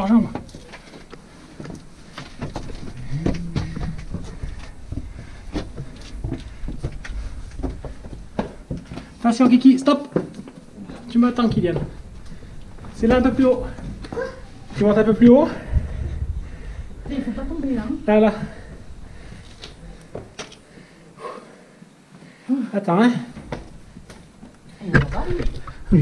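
Footsteps scuff and tap on stone steps.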